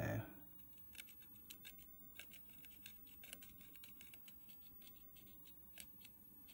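Metal tweezers tap and scrape lightly against a circuit board.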